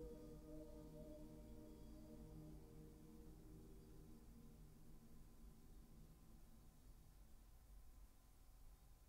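An orchestra plays softly and its last notes fade away in a large echoing hall.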